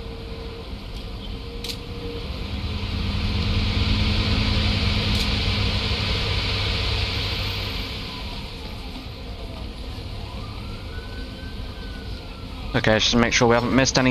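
Street traffic rumbles steadily in the background.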